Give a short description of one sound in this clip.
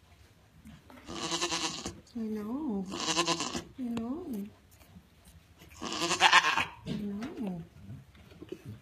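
Goats bleat loudly close by.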